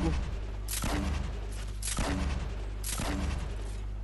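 A shotgun fires booming blasts in a video game.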